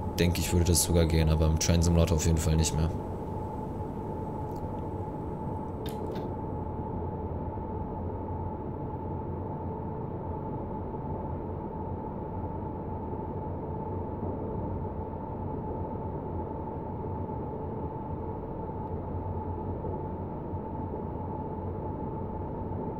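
A train's electric motor hums steadily as it runs along the track.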